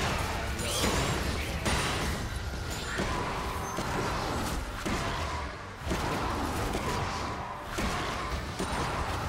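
Magic spells whoosh and crackle in a fast fantasy battle.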